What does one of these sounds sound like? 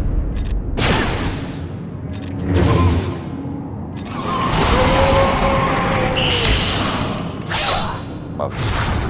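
Lightsabers hum and clash in a fast battle.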